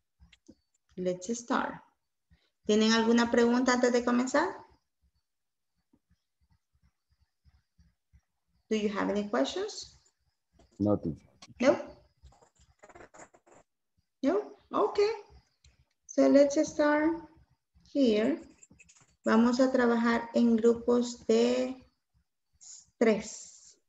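A young woman speaks with animation over an online call, pausing between phrases.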